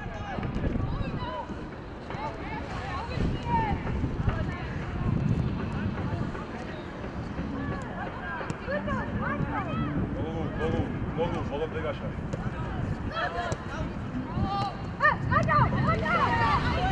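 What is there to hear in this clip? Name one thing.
Young men shout and call to each other in the open air.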